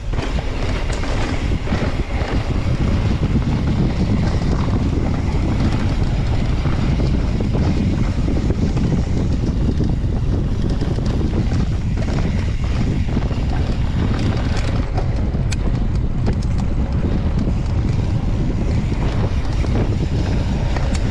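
Wind rushes loudly past the rider's ears.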